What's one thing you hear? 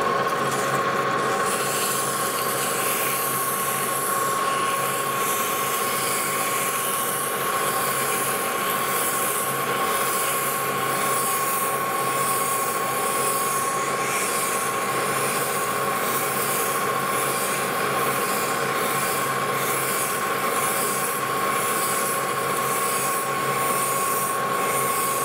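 Sandpaper rasps against a spinning metal rod in a rhythmic back-and-forth.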